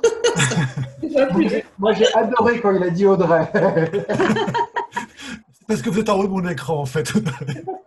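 A man and a woman laugh over an online call.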